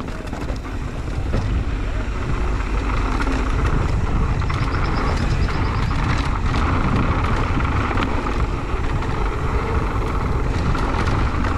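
Loose stones click and rattle under a bike.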